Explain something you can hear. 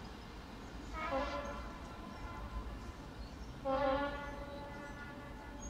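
A diesel locomotive's horn sounds twice in the distance.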